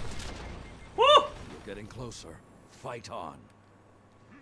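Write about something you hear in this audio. A man talks excitedly into a microphone.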